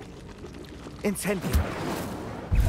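A magic spell bursts with a sharp whoosh.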